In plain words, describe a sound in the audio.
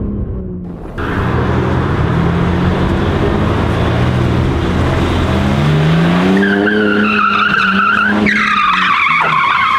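A car engine roars and revs loudly outdoors.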